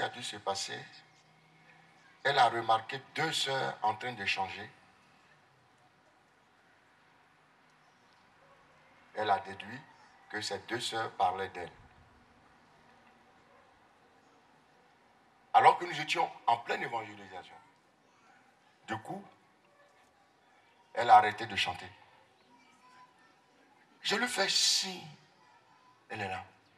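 A man preaches with animation into a microphone over loudspeakers, in bursts with pauses.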